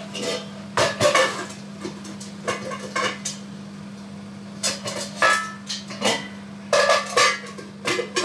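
A range hood fan hums steadily.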